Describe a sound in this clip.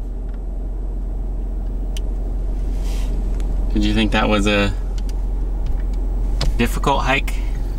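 A vehicle's engine and tyres rumble steadily from inside as it drives along.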